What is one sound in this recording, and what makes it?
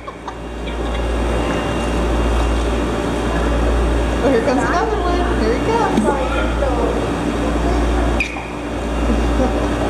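A young girl speaks and giggles close by.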